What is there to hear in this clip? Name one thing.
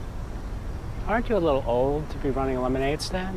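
An elderly man speaks warmly up close.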